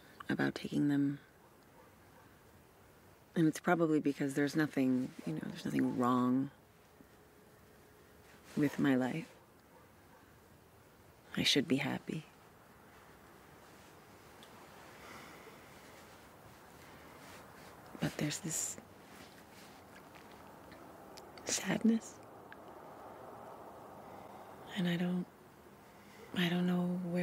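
A woman speaks softly and quietly, close by.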